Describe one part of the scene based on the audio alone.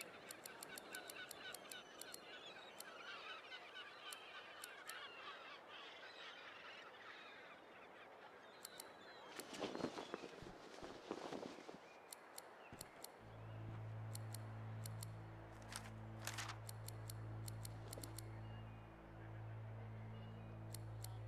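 Soft menu clicks tick as options are selected.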